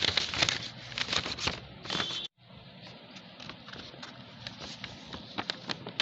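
Sheets of paper slide and rustle on a table.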